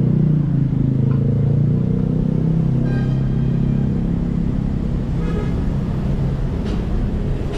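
Traffic rumbles steadily along a nearby street outdoors.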